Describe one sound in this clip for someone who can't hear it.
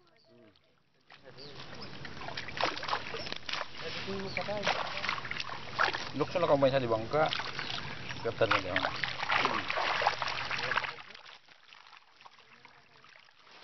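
Water splashes as a net is pulled through it.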